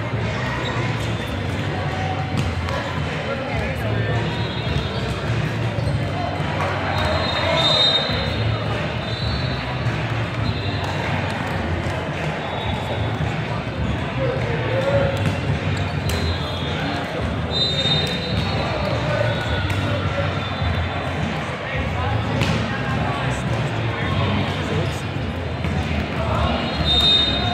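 Young men shout and call to each other in a large echoing hall.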